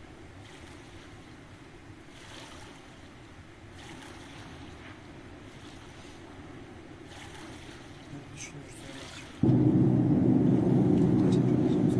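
Water splashes gently as a swimmer strokes.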